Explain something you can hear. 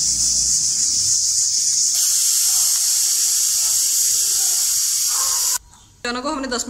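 A pressure cooker hisses loudly with escaping steam.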